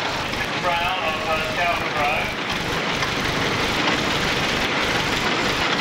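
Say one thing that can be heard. A second tractor engine idles and rumbles nearby.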